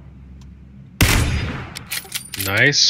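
A rifle fires a single loud, sharp shot.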